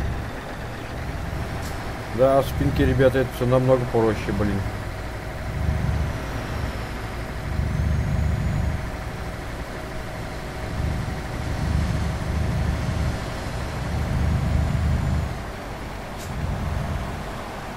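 A heavy truck engine rumbles low and swells now and then as the truck drives along.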